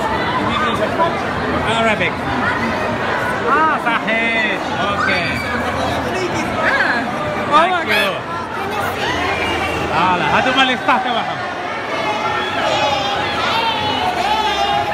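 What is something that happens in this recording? A dense crowd chatters loudly all around, with many overlapping voices of men and women.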